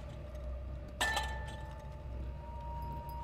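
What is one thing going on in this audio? A metal pot clanks loudly and rings on.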